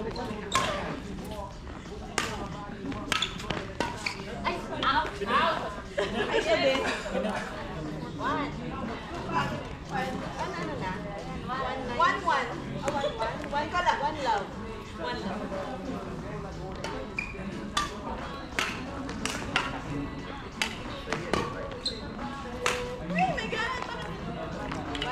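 Young women call out and chatter across the court.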